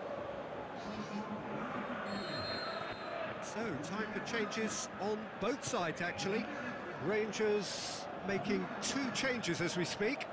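A stadium crowd murmurs and cheers in the background.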